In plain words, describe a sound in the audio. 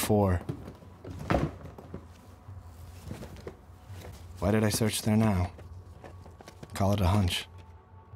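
Papers and small objects rustle and shift as they are rummaged through.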